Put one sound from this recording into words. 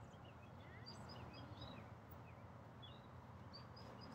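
Small birds chirp outdoors.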